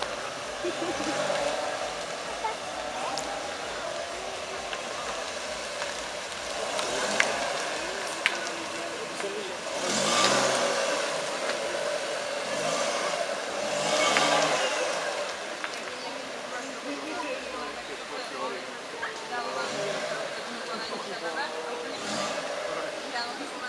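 Tyres roll over asphalt.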